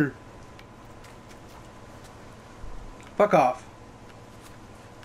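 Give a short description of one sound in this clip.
Footsteps run through rustling undergrowth.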